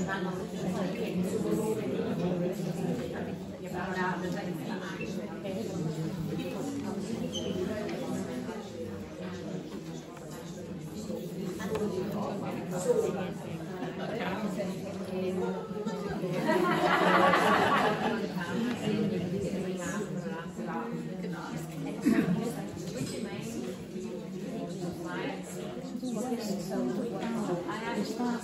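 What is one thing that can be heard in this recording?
Papers rustle in women's hands.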